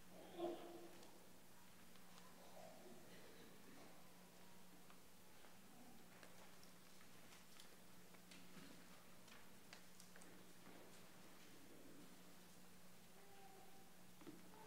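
A large congregation rustles and shifts in a big echoing hall.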